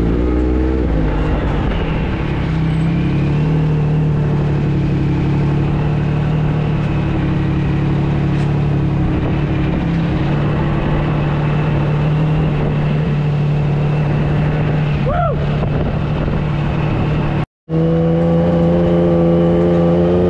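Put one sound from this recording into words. A buggy engine idles with a steady low rumble close by.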